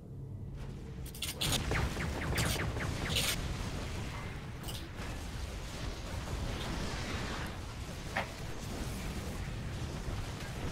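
Game gunfire and laser blasts crackle in a battle.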